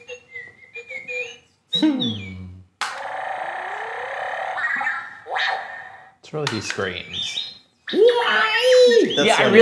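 A toy robot beeps and whistles in quick electronic chirps.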